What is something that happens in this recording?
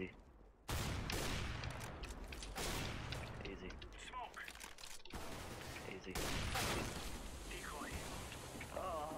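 A young man talks with animation into a microphone.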